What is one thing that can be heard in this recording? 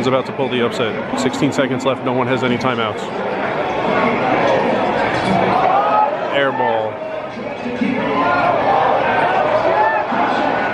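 A large crowd murmurs and cheers in an echoing arena.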